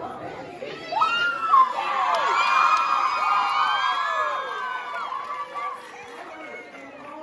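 An audience cheers and screams loudly.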